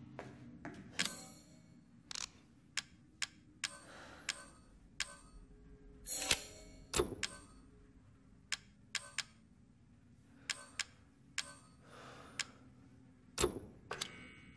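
Short menu clicks tick one after another.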